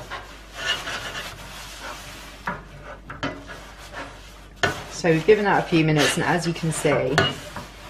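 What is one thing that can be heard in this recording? A sponge scrubs wetly against a metal baking tray.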